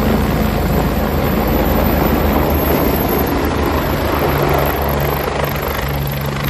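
A helicopter's rotor thumps loudly overhead as it hovers close by, outdoors in rushing air.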